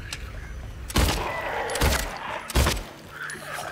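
Gunshots ring out and echo.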